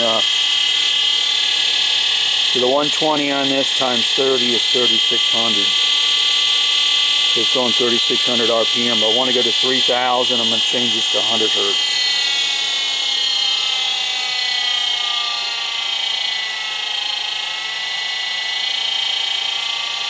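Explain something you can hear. An electric motor runs with a steady high whine.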